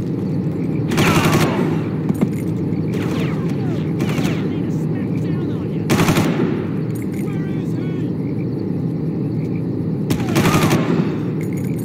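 A rifle fires in short bursts with a ringing echo.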